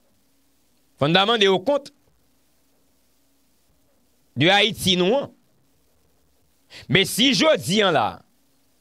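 A young man speaks calmly into a close microphone in short phrases with pauses.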